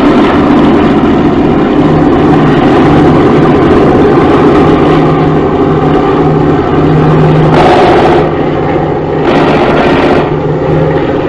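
Aircraft engines drone steadily overhead.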